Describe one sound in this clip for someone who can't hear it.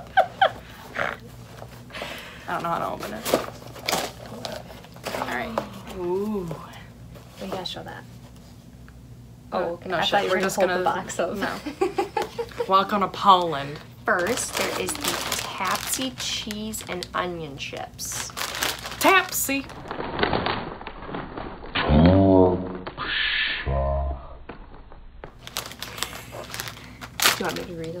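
A plastic snack bag crinkles.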